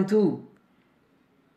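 A man says a short word close by.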